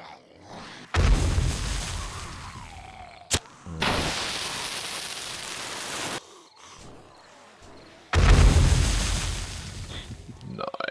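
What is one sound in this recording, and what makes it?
A tool strikes metal with loud, harsh bursts.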